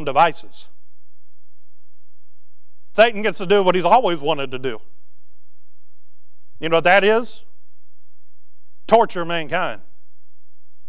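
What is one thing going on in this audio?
A man speaks calmly into a microphone in short phrases with pauses.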